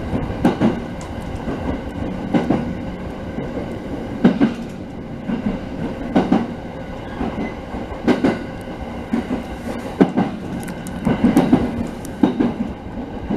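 Train wheels clack over rail joints in a regular rhythm.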